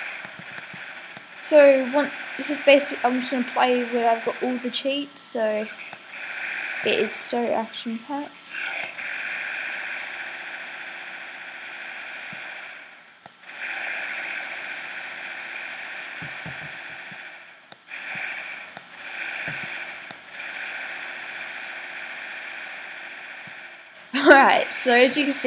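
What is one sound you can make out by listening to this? Gunfire rattles rapidly in a video game.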